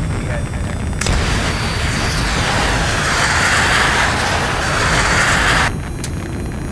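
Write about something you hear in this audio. A rocket roars loudly as it launches.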